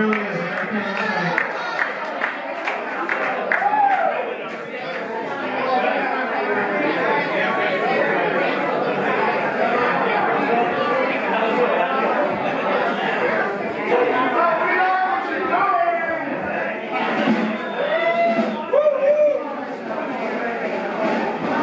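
A live band plays loud amplified music in an echoing hall.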